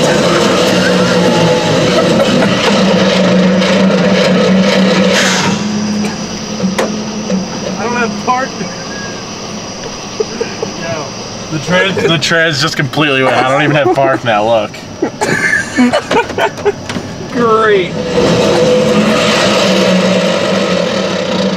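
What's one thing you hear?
A loud engine roars steadily inside a vehicle.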